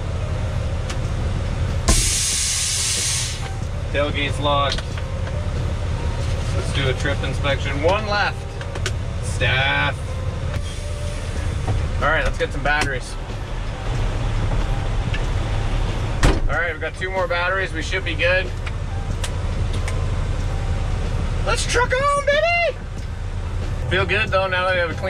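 A truck engine rumbles steadily from inside the cab.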